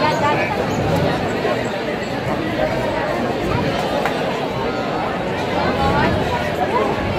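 A large outdoor crowd chatters and calls out all around.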